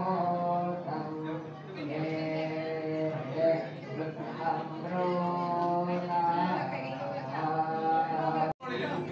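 Several women sing a slow, steady chant together nearby.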